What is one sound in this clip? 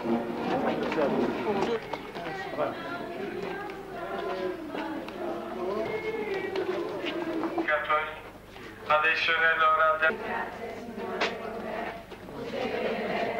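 A crowd of men and women talk and murmur nearby.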